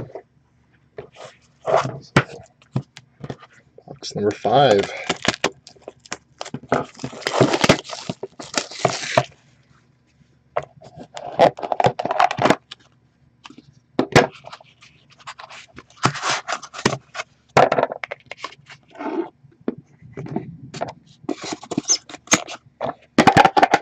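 Hands slide and tap small cardboard boxes.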